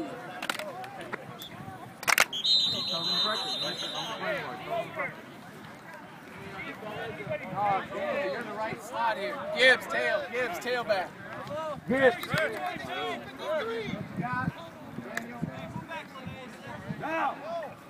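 Young men shout and talk over one another outdoors.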